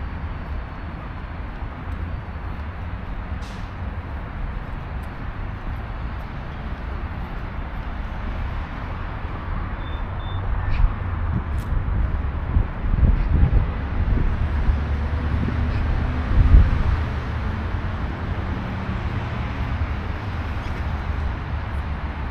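Wind blows steadily outdoors, rumbling and gusting at times.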